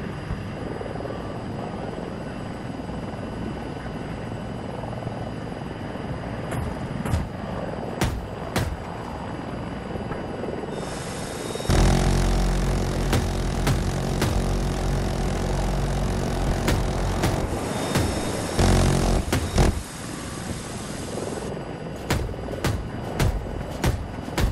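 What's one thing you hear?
A jet engine roars steadily throughout.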